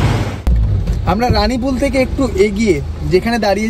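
A young man talks with animation close to the microphone.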